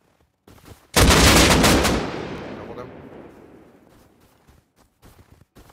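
A rifle fires a single loud shot that echoes away across open ground.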